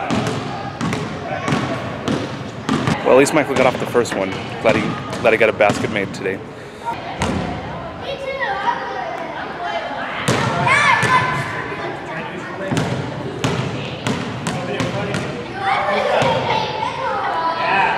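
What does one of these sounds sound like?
Basketballs bounce on a hard floor in an echoing hall.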